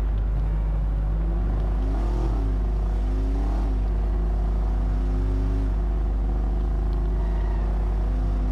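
A car engine revs up and down as it speeds along a street.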